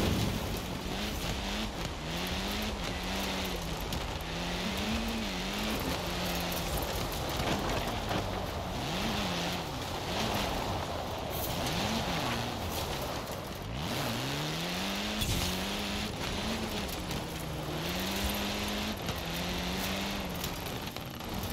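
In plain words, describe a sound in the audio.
Tyres crunch and hiss over loose gravel.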